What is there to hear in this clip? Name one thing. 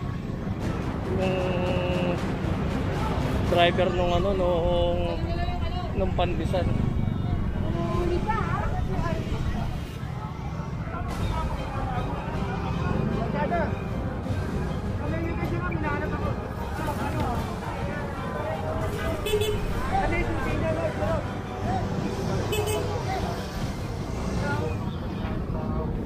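A busy crowd of men and women chatters all around outdoors.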